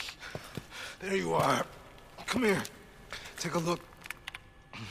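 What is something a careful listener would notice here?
A wounded man speaks weakly and hoarsely, close by.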